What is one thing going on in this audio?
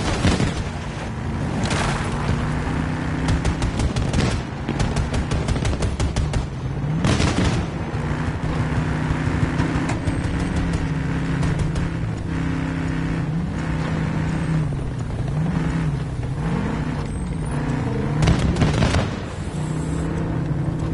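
A tank engine rumbles and whines, rising and falling as the tank drives.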